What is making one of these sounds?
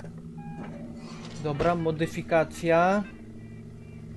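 A computer terminal chirps and beeps as it starts up.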